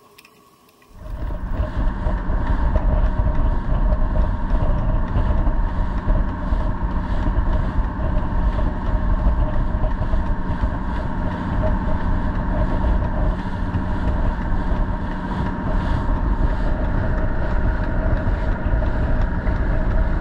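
A boat's engine drones steadily.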